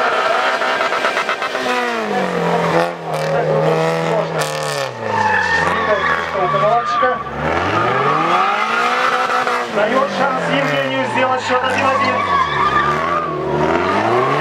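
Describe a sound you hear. A car engine revs hard, rising and falling in pitch.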